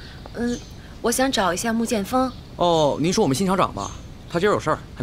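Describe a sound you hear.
A young man answers cheerfully nearby.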